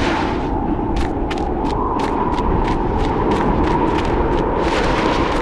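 Footsteps run quickly over sand.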